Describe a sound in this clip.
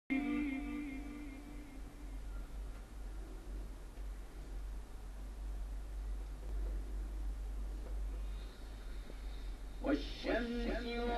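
An elderly man chants in long, drawn-out notes through a microphone.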